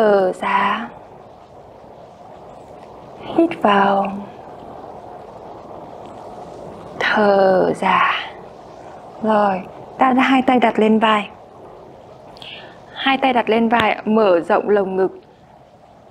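A young woman speaks calmly and clearly into a close microphone, giving instructions in short phrases.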